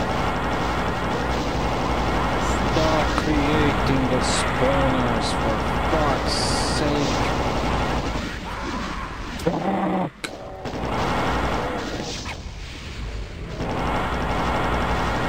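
A futuristic gun fires rapid buzzing bursts.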